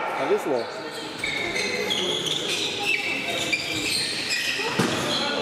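Sneakers squeak on a hardwood court in an echoing sports hall.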